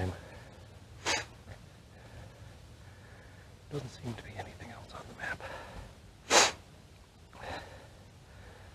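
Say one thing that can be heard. A gloved hand brushes and bumps against the microphone.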